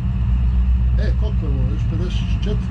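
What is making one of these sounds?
A man speaks briefly and casually close to a microphone.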